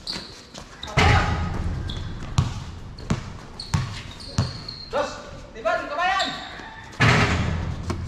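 A basketball crashes against the rim and backboard with a loud clang.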